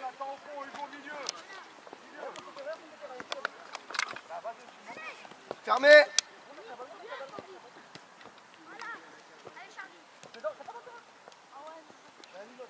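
Children shout and call out across an open field.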